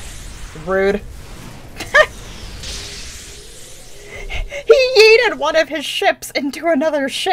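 A young woman talks and laughs with animation into a close microphone.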